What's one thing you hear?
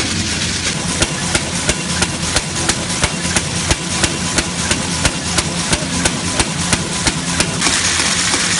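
A machine clicks in a quick, even rhythm.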